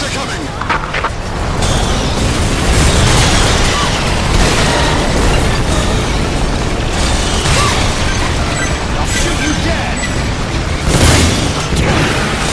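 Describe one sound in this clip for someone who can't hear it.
Rapid gunfire rattles on and on.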